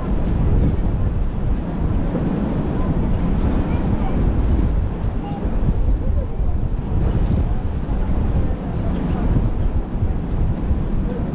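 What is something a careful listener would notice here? Water rushes past a moving ship's bow.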